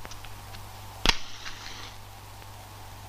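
A match strikes and flares with a short fizz.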